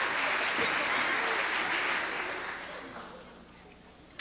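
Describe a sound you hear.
An audience applauds in a large echoing hall, then fades.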